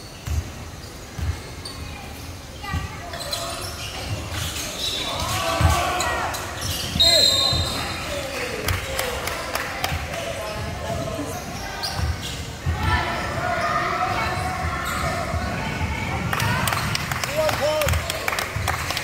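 Basketballs bounce on a hardwood floor in a large echoing hall.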